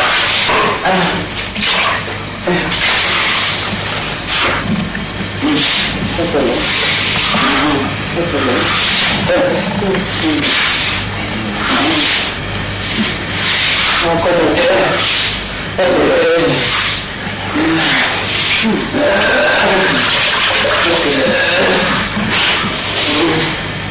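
A woman speaks urgently and with distress close by.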